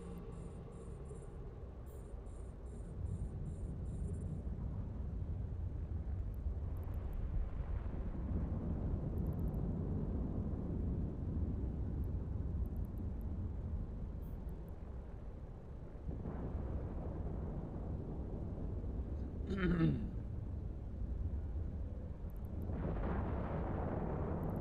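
A deep spaceship engine hum drones steadily.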